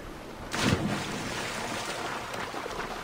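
Water sloshes around a swimmer.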